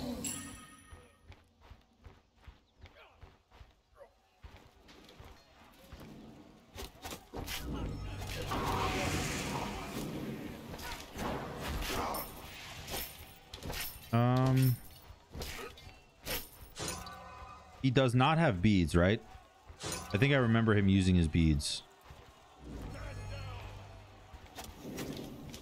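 Quick footsteps thud on packed dirt.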